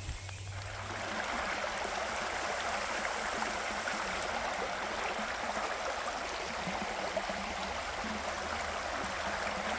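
A shallow river rushes and splashes over stones.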